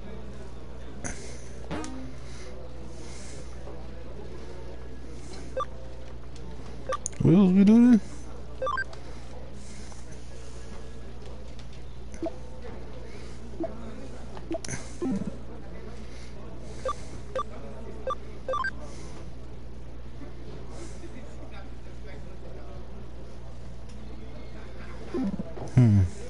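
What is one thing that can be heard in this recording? Short electronic menu blips sound again and again as selections change.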